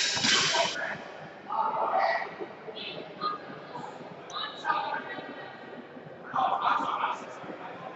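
Voices of a crowd chatter in the background of a large echoing hall.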